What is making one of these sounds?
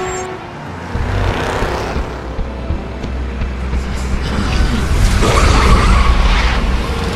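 A bus engine rumbles close by.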